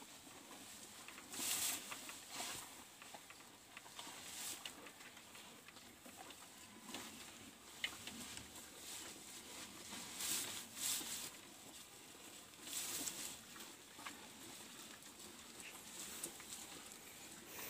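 Cows munch and tear at dry grass close by.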